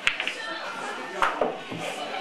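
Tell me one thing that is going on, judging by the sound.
A cue strikes a ball with a sharp tap.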